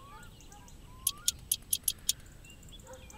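A wrench clicks as it turns a bolt.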